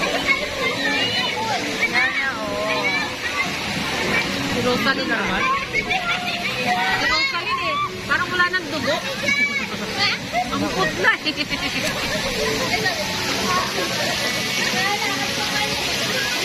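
Several young people chatter and laugh nearby.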